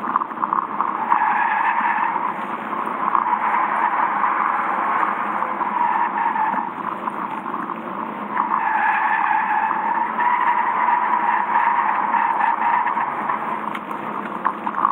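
Tyres squeal loudly on the track surface.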